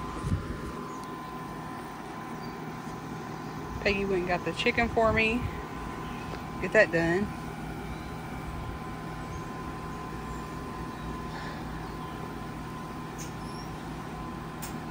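A gas grill burner hisses softly and steadily.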